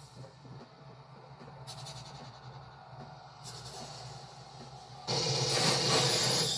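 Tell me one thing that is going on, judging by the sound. Video game sound effects hum and rumble from a television speaker.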